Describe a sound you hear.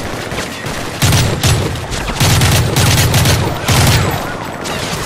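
Rapid gunfire bursts loudly nearby.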